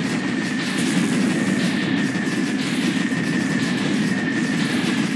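Explosions boom one after another in a game.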